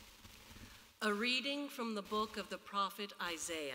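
A woman speaks clearly through a microphone in a large echoing room.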